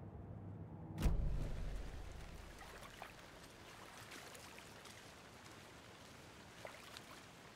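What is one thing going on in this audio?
Wind blows softly through forest trees outdoors.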